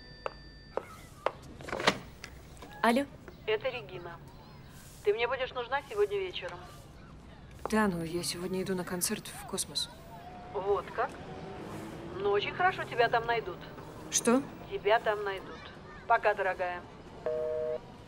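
A young woman speaks calmly into a telephone, close by.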